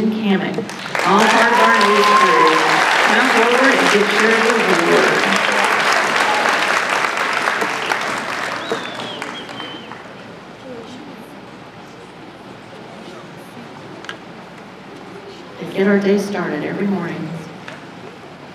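A woman speaks over a loudspeaker in a large echoing hall.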